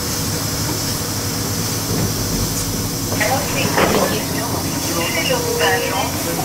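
A bus engine rumbles steadily from inside the bus.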